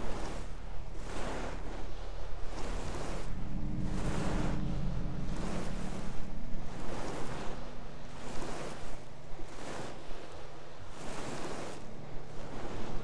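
Footsteps tap steadily across a hard tiled floor.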